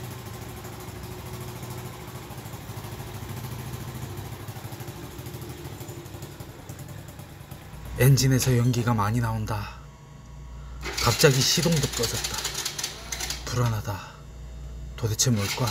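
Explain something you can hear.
A small motorcycle engine idles with a steady, chugging rumble.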